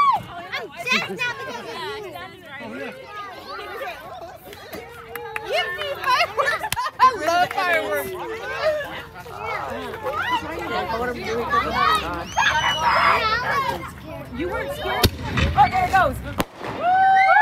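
A crowd of people chatter and shout excitedly outdoors.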